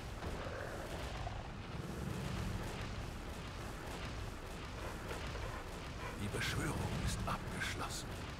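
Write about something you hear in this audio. A magical energy beam crackles and hums.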